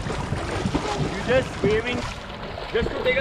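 A swimmer splashes and kicks through the water.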